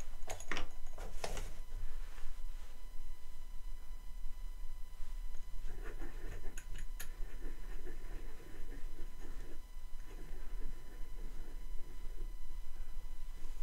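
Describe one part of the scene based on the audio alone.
Small wooden pieces knock lightly against a hard surface.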